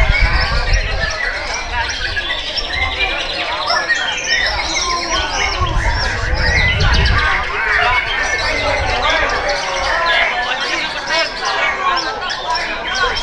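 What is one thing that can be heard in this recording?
A caged songbird sings loud, fast, warbling phrases close by.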